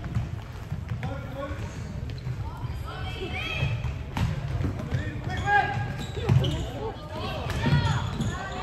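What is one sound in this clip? Young women shout to each other across a large echoing hall.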